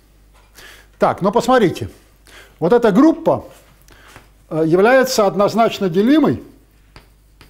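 An elderly man lectures calmly.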